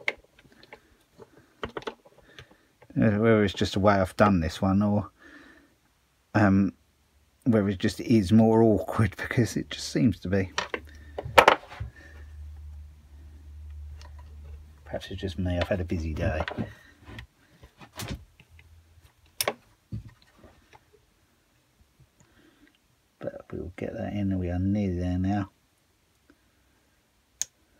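Pliers click against metal engine parts.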